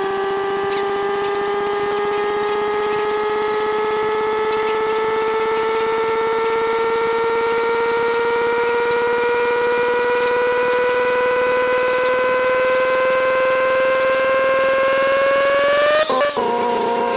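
A car engine hums steadily and slowly rises in pitch as the car speeds up.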